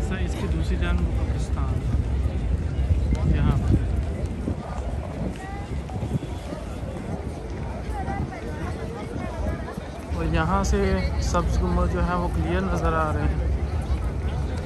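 Wind blows across the microphone.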